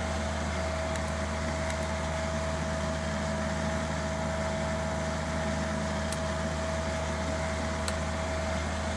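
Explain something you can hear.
Cockpit switches click now and then.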